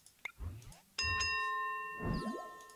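A bright electronic chime rings out and lingers.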